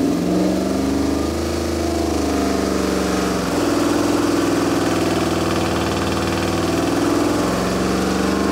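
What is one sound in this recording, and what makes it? A big engine runs loudly with a steady, deep rumble that shifts in pitch now and then.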